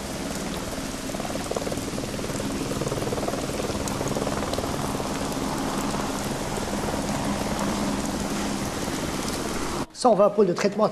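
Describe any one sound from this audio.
A helicopter engine and rotor roar steadily nearby.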